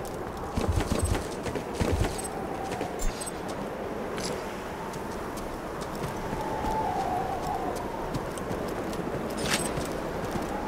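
Short bright chimes ring as items are picked up.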